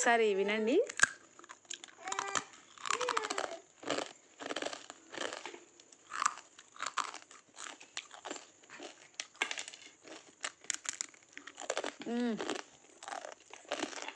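Crisp fried snacks crackle and rustle as fingers handle them.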